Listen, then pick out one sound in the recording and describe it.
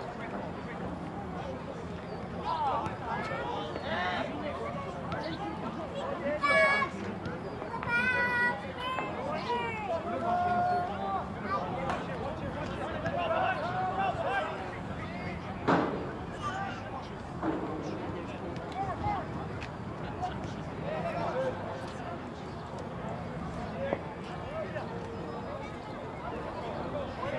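Young men shout and call to each other outdoors across an open field.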